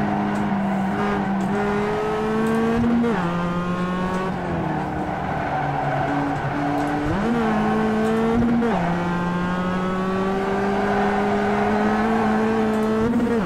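A racing car engine drones through loudspeakers, its pitch climbing and dropping with each gear change.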